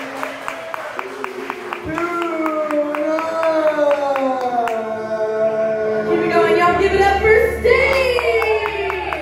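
A man sings through a microphone and loudspeakers.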